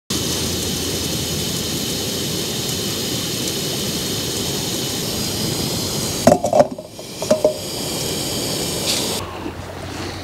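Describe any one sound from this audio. A gas stove burner roars steadily.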